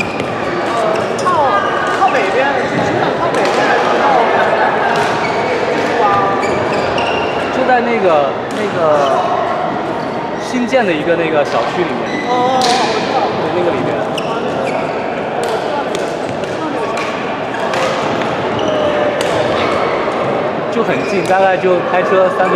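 Several people chatter and call out across a large echoing hall.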